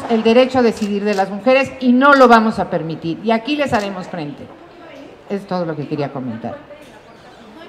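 A middle-aged woman speaks with emphasis into a microphone.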